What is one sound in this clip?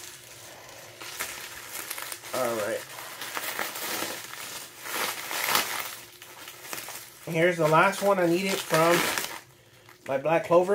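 Bubble wrap crinkles and rustles as it is pulled open.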